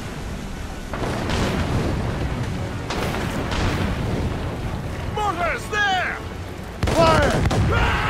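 Cannons fire with deep booms.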